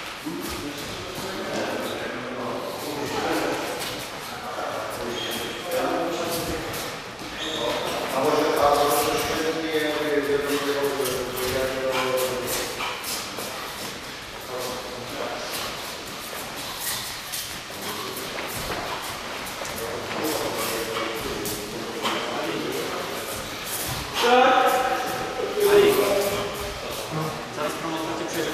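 Feet shuffle and tap on a padded floor.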